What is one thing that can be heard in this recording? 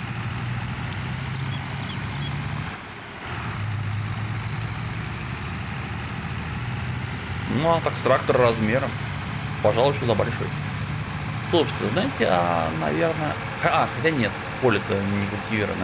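A tractor engine drones steadily at low pitch.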